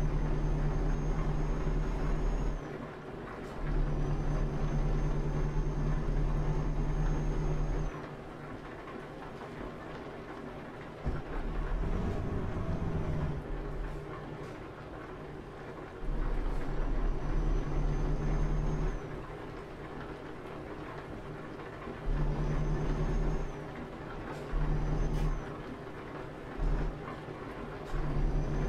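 A truck engine drones steadily, swelling louder and easing off in turns.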